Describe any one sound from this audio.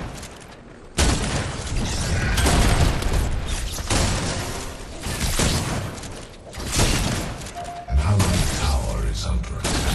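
Explosions thud heavily.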